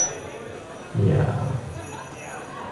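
A saxophone plays a low note.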